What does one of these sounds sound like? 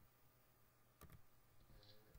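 A game weapon clicks as it is switched.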